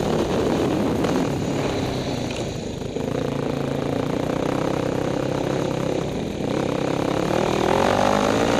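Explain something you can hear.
Another dirt bike engine buzzes a short way ahead.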